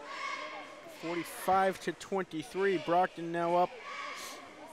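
Young men chant loudly together in a large echoing hall.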